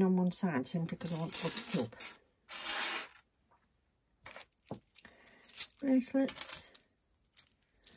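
Metal chains and beads jingle and clink as a hand handles them.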